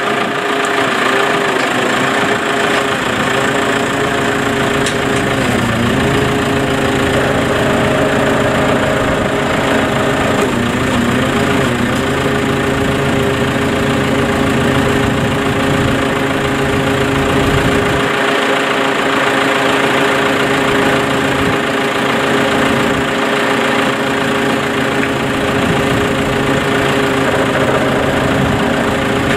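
A large farm machine's engine runs with a steady droning hum.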